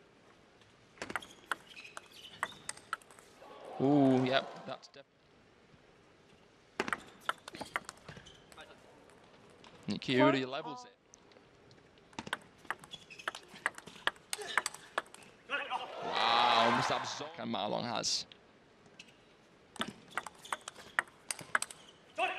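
A table tennis ball clicks back and forth off paddles and the table in a fast rally.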